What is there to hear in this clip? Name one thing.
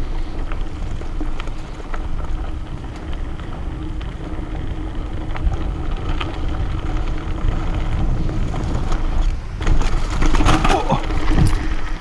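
Loose gravel and twigs rattle under the tyres.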